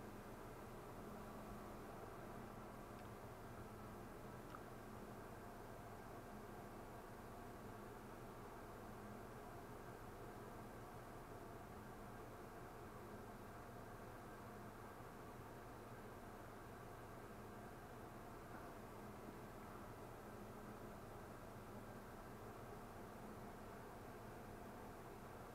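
Metal cans clink softly.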